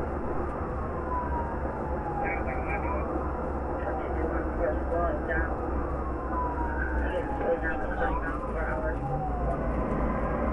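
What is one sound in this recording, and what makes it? A siren wails up and down close by.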